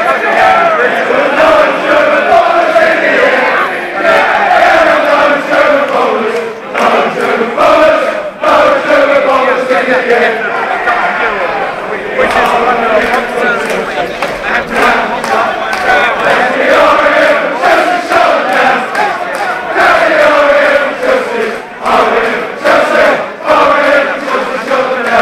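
A large crowd of men chants loudly together outdoors.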